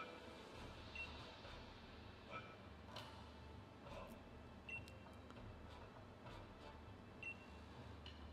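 Short electronic chimes sound now and then.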